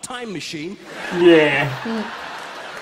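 A young man laughs softly close by.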